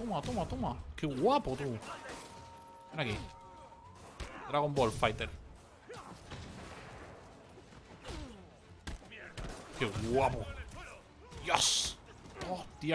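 Punches and kicks thud in a brawl.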